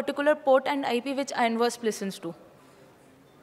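A young woman speaks with animation into a microphone, heard through a loudspeaker.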